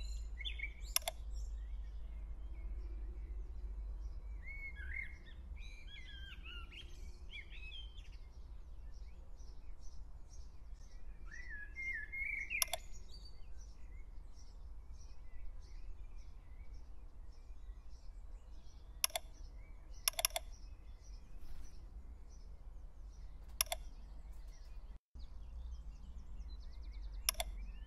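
Short sharp interface clicks sound now and then.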